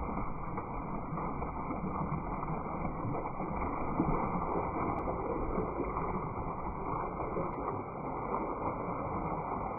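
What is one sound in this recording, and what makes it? A cow slurps and laps at splashing water.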